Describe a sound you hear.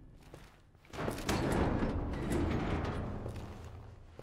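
A metal gate rattles as its handle is turned.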